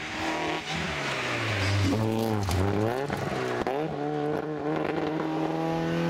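Gravel sprays and rattles under spinning tyres.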